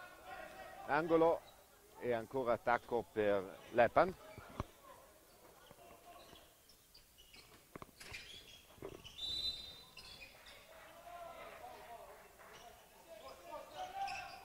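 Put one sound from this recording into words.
A handball bounces on a wooden court in a large echoing hall.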